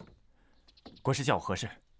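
A young man asks a question calmly.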